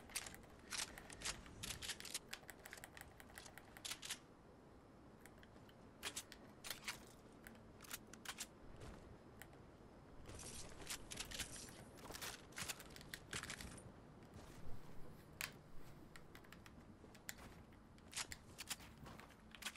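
Footsteps patter on wooden floors.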